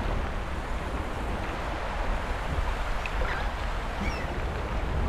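Wings flutter softly as a small creature flies.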